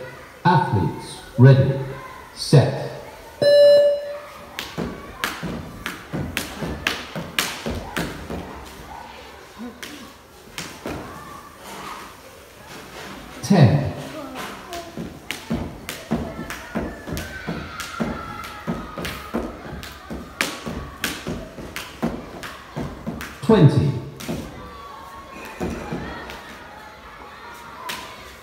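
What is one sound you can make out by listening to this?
A dancer's feet stamp and tap rhythmically on a hard floor.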